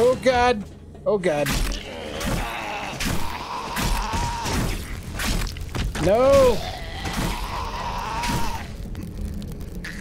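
Blows thud against a zombie.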